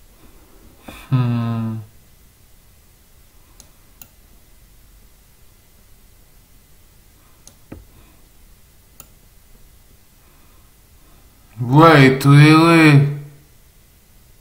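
A young man makes loud drawn-out vocal sounds close to the microphone.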